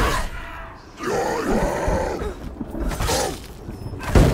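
A monstrous creature growls and roars.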